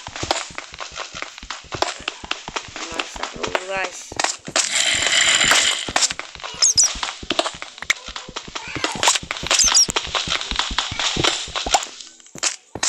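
A pickaxe chips rapidly at stone blocks.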